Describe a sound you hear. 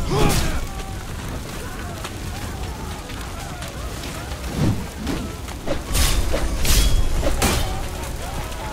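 Metal blades clash and strike in sharp, heavy blows.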